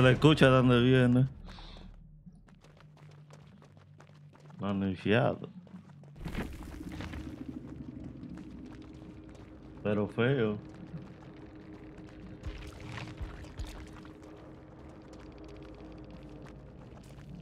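Footsteps run quickly through tall grass.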